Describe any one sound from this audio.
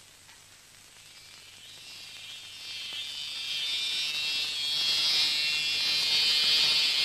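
A portable radio hisses and crackles with static.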